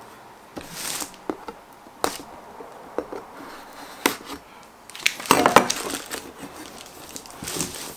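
Fingers tap and knock on a cardboard box.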